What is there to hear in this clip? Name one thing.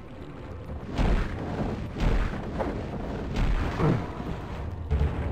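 A magic weapon fires with loud, booming blasts every second or so.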